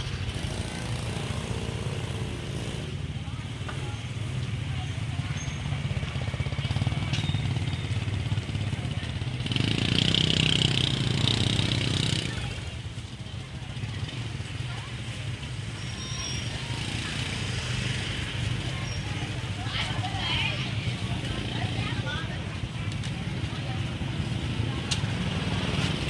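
Motor scooters ride past at low speed.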